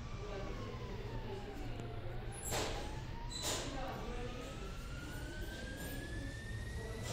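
A jetpack engine whines steadily, its pitch dipping and then slowly rising.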